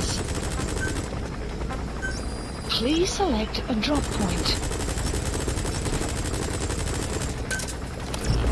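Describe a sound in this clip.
Soft electronic menu beeps sound.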